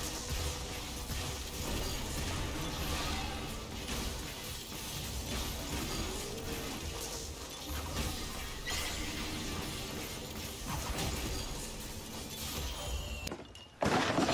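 Spells and weapons clash and crackle in a fantasy battle.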